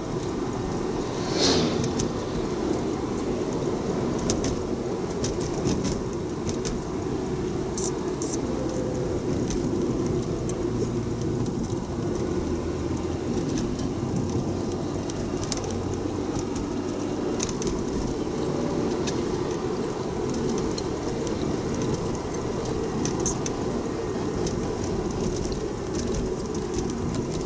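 A car engine hums steadily with road noise inside the cabin.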